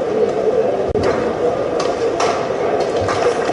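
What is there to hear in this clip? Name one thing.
A racket smacks a shuttlecock.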